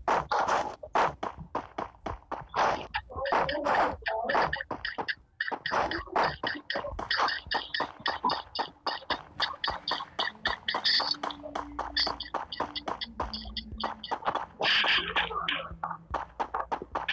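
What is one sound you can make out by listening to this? Quick footsteps run over grass and then over a wooden floor.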